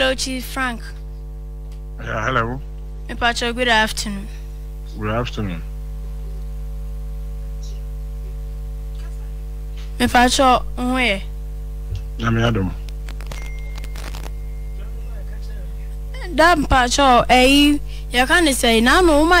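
A young woman speaks calmly into a close microphone, in short phrases with pauses.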